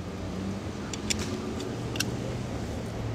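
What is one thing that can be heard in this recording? A metal bike lock clicks and rattles as it is fitted.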